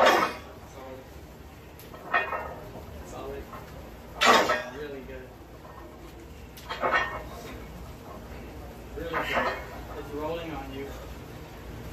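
A man grunts and exhales sharply with effort, again and again.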